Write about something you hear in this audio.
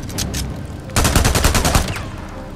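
A rapid burst of gunfire rattles loudly.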